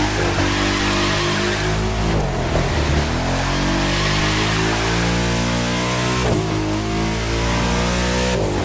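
A powerful car engine roars loudly, its pitch rising and falling as it shifts gears.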